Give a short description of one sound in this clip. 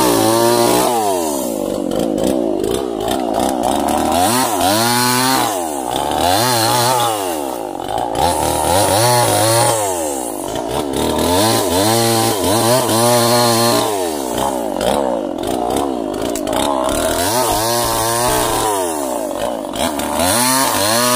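A chainsaw engine roars close by, revving up and down repeatedly.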